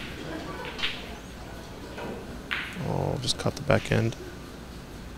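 Snooker balls knock together and drop into a pocket.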